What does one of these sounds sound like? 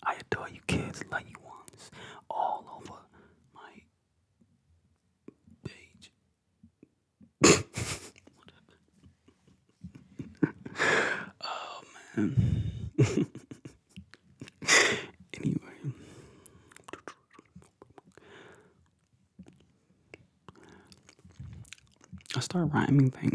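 A young man speaks softly and close into a microphone, in a whisper-like voice.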